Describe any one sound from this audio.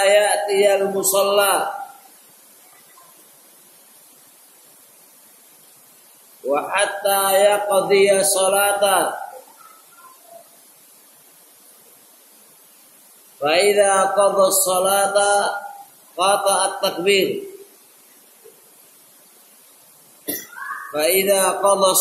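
A man chants loudly in long melodic phrases, close by, with pauses between them.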